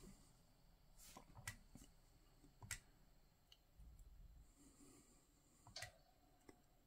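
Buttons on a handheld game console click sharply a few times.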